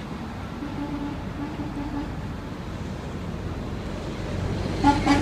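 A train horn blows in loud, repeated blasts.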